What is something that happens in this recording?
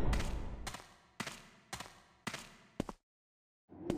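Footsteps echo on a stone floor at an even pace.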